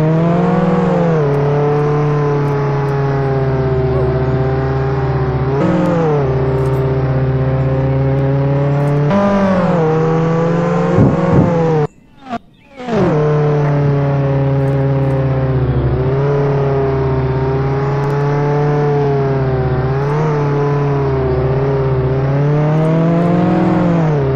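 A car engine drones steadily, briefly cutting out partway through.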